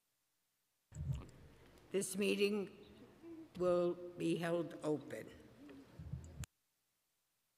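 An elderly woman speaks into a microphone through a mask.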